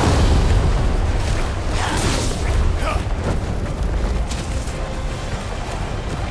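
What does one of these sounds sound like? Deep rumbling booms roll through the fight.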